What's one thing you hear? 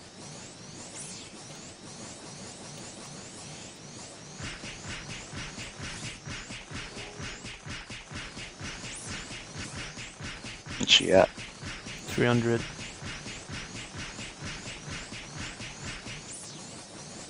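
Game sword slashes and hit effects sound in rapid repetition.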